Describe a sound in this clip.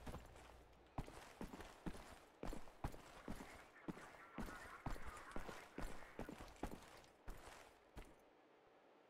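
Footsteps tread steadily on stone in an echoing passage.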